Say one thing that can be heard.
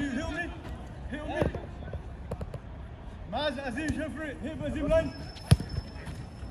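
A football thuds off a boot.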